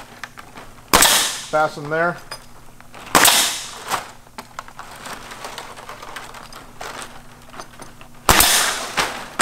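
A pneumatic staple gun fires with sharp bangs.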